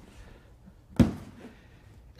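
A cardboard box thuds onto a table.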